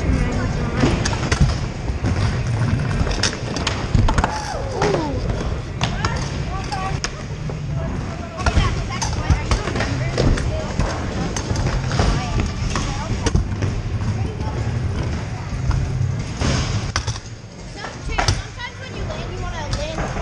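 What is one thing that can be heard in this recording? Scooter wheels rumble and roll over a wooden ramp.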